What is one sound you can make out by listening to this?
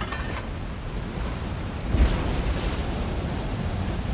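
Flames crackle and burn.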